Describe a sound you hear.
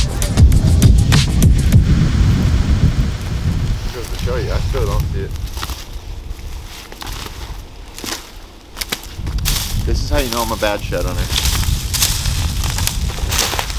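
Dry leaves crunch under a man's footsteps.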